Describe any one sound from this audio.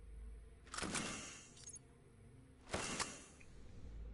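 Soft whooshing interface sounds play as menu items are picked.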